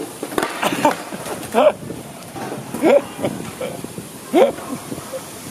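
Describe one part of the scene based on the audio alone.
A skateboard snaps against the ground as a trick is landed.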